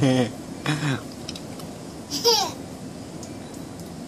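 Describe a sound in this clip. A baby giggles and squeals with delight.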